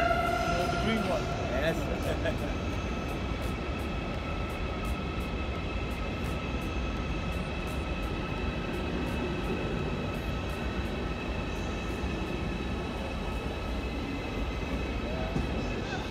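A train rolls slowly along the track with a steady rumble and rhythmic clicks of wheels.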